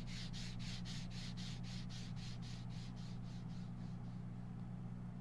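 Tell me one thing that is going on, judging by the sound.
Footsteps tap quickly and fade away.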